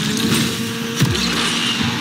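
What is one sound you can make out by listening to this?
A car smashes through obstacles with a loud crash.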